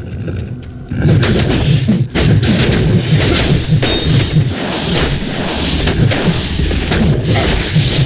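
Weapons clash repeatedly, with crackling magic bursts.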